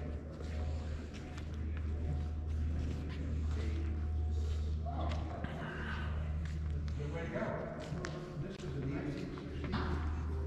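A man talks casually nearby in a large echoing hall.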